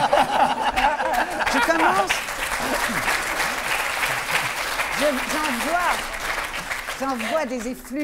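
An audience laughs and cheers.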